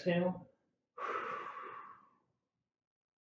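A man exhales loudly.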